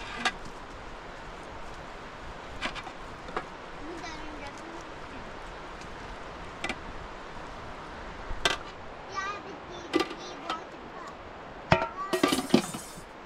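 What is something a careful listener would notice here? Metal utensils clink against pots and dishes.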